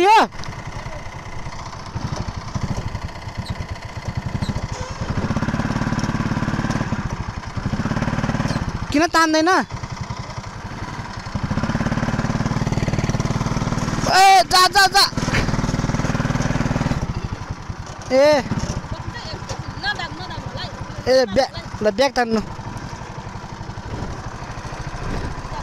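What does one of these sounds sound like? A small kart engine buzzes and revs up and down close by.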